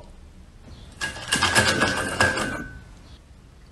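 A soft toy scrapes and rustles on a wooden floor.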